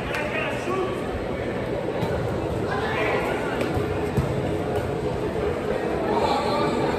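Footsteps scuff and run on artificial turf.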